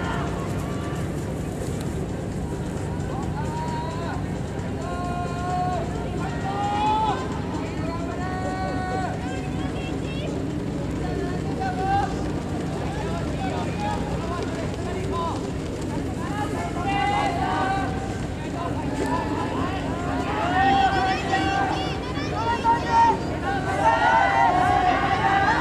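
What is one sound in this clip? A pack of runners' footsteps patter on a track.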